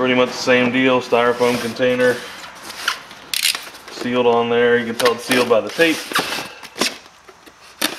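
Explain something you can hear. A knife slices through tape on a foam box.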